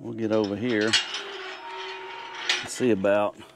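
A metal gate creaks as it swings open.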